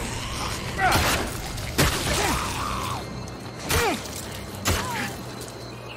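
Heavy blows strike with sharp thuds.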